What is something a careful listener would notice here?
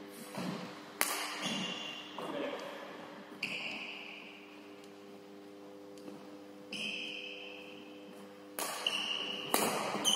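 Shuttlecocks are struck sharply with rackets in an echoing hall.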